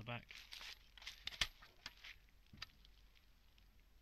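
A plastic case clicks open.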